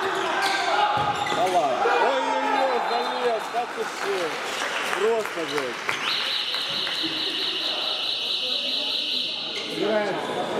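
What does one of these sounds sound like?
Sneakers of handball players squeak on a wooden court floor in a large echoing hall.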